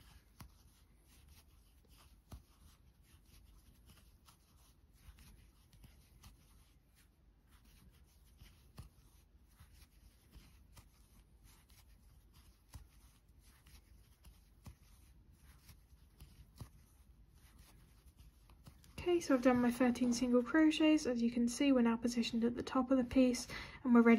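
A crochet hook clicks and rustles softly through yarn.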